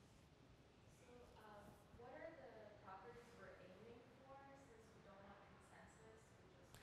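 A man speaks calmly in a quiet room, heard from a distance.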